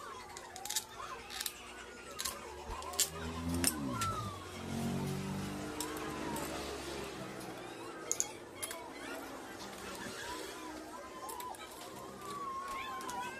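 Metal tools clink and tap against engine bolts.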